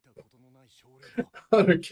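Young men laugh close by.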